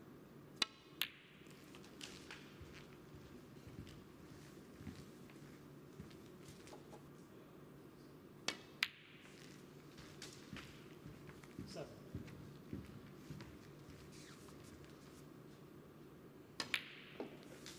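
A cue strikes a ball with a sharp tap.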